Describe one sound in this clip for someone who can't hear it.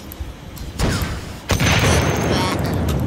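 Fiery explosions roar and crackle.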